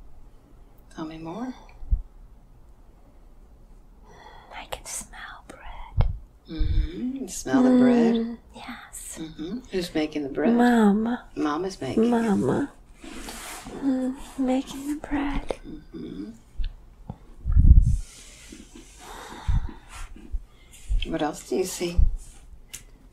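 An elderly woman speaks close by in a strained, pained voice.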